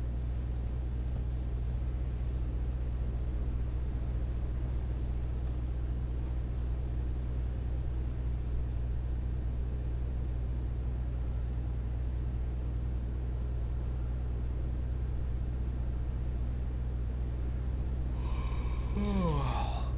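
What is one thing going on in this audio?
Tyres roll on the road with a steady rush.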